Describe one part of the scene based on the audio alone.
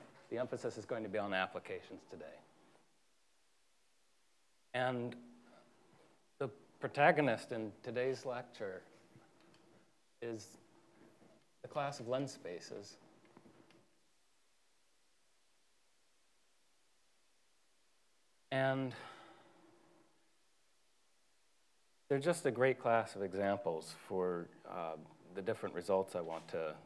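A man lectures calmly, heard through a microphone in a large echoing hall.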